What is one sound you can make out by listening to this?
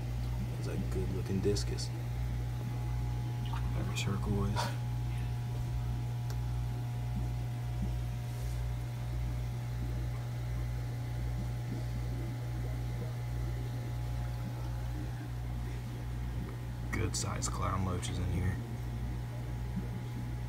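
An aquarium pump hums steadily nearby.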